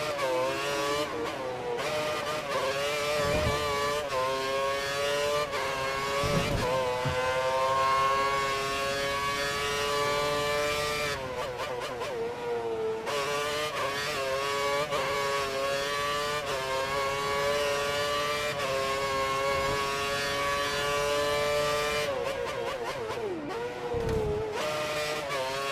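A racing car engine screams at high revs, rising in pitch through each gear and dropping sharply at each shift.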